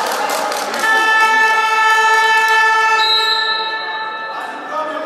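A referee blows a long whistle blast.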